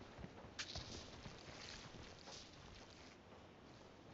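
A game character bandages wounds with soft rustling.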